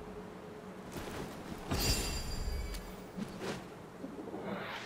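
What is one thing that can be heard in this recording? Flames burst with a whoosh and crackle.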